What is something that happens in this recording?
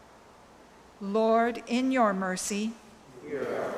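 An elderly woman speaks calmly into a microphone in an echoing hall.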